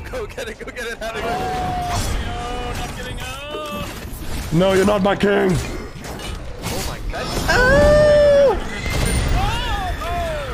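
Game sound effects whoosh and blast.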